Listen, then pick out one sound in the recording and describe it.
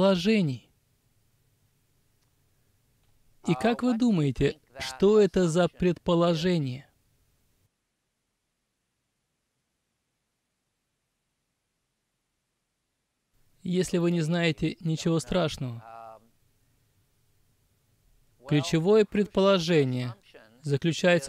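An older man speaks calmly into a close microphone, with long pauses.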